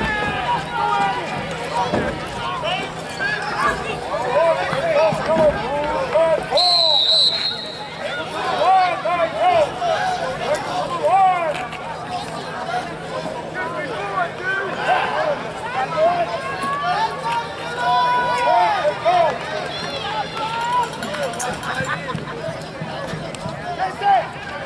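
A crowd of spectators chatters and cheers loudly outdoors.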